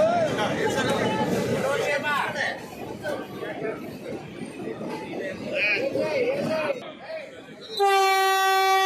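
A crowd of men talks and cheers outdoors.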